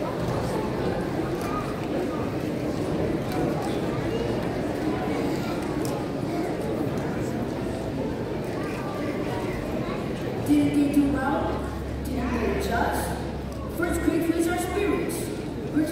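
Many people chatter quietly in a large echoing hall.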